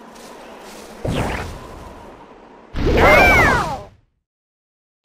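Cartoon sound effects whoosh and pop.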